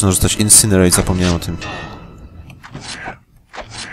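A blade clangs against metal armour.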